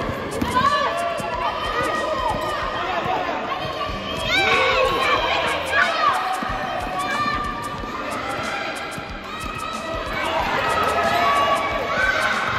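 Young girls shout and call out to each other with high voices in a large echoing hall.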